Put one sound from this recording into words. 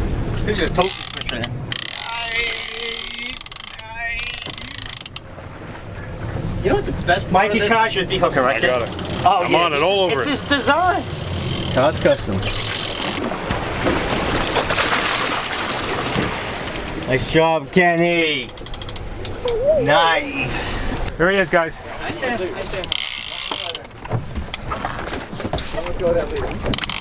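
Wind and waves rush past a moving boat outdoors.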